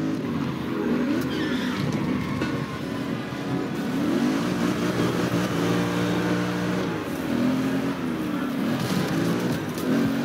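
Tyres skid and scrape over rough ground.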